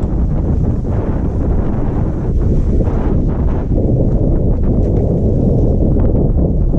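Wind rumbles loudly across the microphone.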